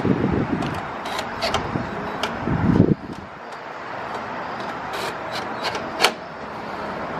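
Metal clicks and taps sharply up close.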